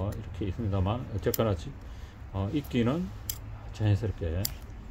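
Pruning scissors snip through a thin twig.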